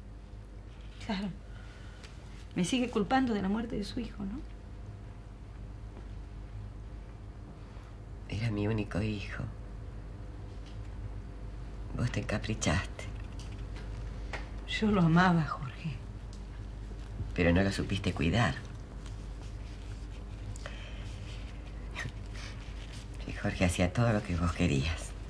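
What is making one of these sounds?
A middle-aged woman speaks slowly and calmly, with long pauses, close to a microphone.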